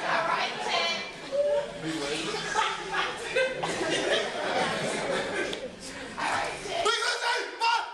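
Young men chant loudly in unison.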